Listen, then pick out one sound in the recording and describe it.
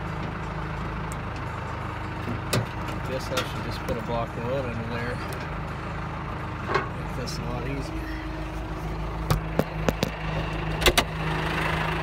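A tractor engine idles with a steady low rumble.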